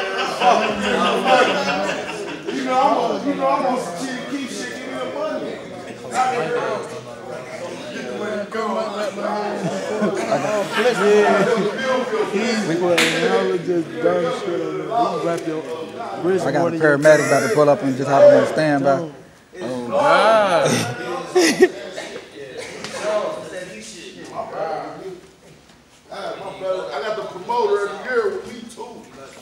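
A young man talks with animation close by.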